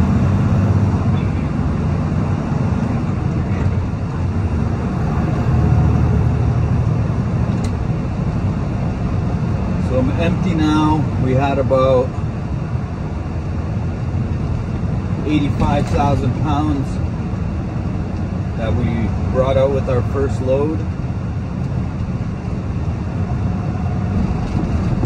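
A truck engine rumbles steadily while driving on a road.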